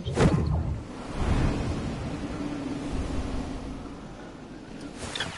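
Wind rushes loudly during a fall.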